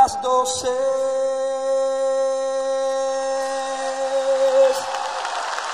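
An elderly woman sings a long held note through a microphone in a large hall.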